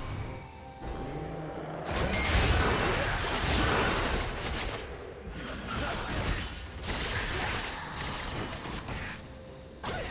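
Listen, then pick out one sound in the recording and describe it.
Game spells and weapons crash and burst in a fast battle.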